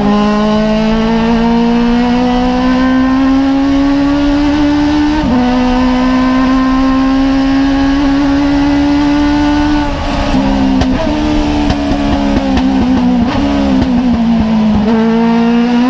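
A race car engine rises in pitch and drops sharply at each gear change.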